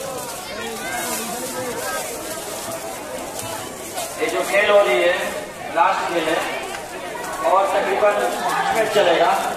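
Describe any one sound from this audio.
Fireworks fizz and crackle on the ground.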